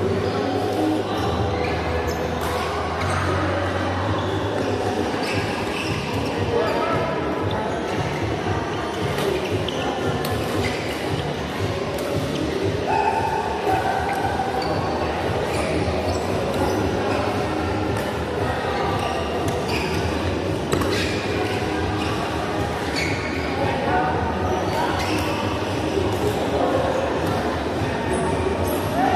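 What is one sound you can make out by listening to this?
Shoes squeak on the hall floor.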